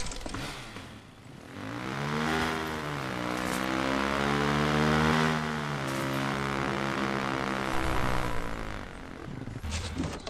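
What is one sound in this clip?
A motorcycle engine revs and roars.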